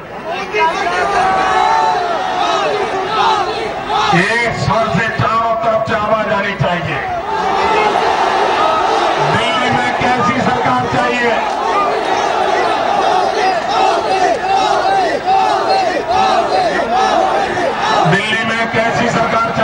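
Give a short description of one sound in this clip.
A man speaks forcefully into a microphone over loudspeakers, echoing outdoors.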